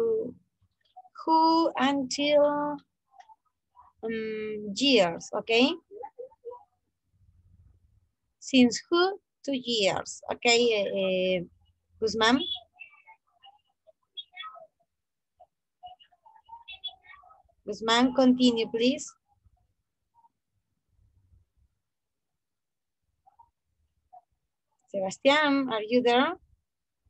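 A woman speaks calmly through an online call, in short bursts with pauses.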